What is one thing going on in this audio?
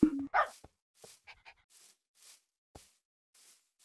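Footsteps crunch softly on grass.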